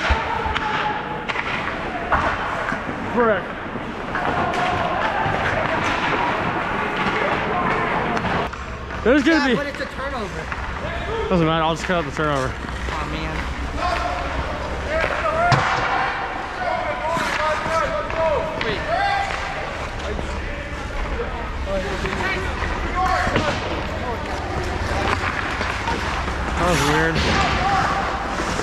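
Hockey sticks clack against the ice.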